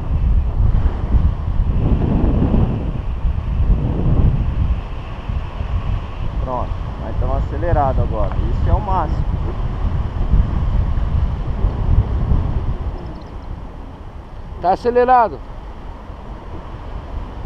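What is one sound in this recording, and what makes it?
Wind rushes and buffets the microphone in flight.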